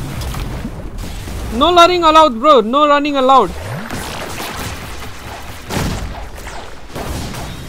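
Magic blasts whoosh and rumble.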